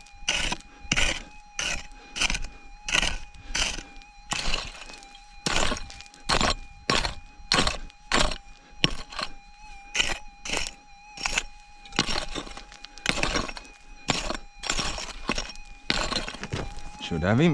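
A pick strikes hard dirt again and again in a steady rhythm.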